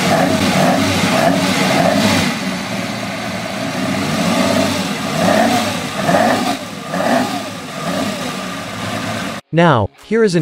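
A car engine runs and revs up and down in quick bursts.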